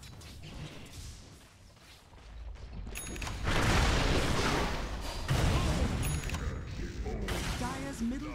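Game characters clash in battle with bursts of magic and blows.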